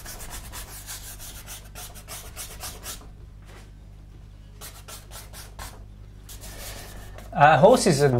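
A paintbrush scrubs and swishes across canvas.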